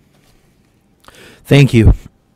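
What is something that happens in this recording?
A man speaks into a microphone at close range.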